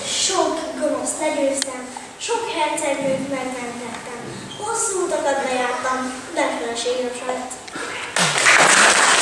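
A child speaks clearly, reciting lines in an echoing hall.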